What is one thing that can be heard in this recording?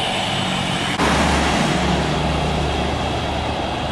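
A jet airliner roars loudly overhead on its approach.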